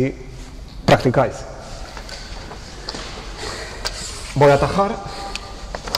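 A man lectures in a loud, echoing voice.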